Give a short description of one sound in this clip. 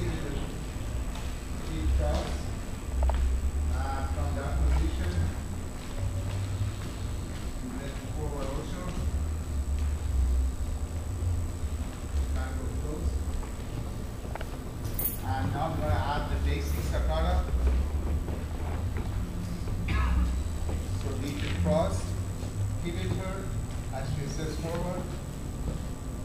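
A man speaks calmly, explaining, in a large echoing room.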